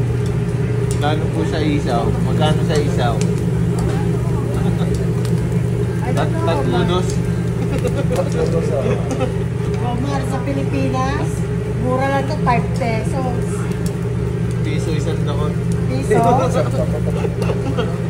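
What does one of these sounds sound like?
A woman talks nearby.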